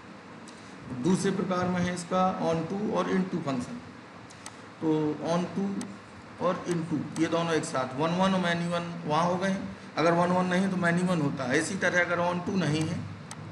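A man speaks calmly, close to a microphone, explaining as in a lecture.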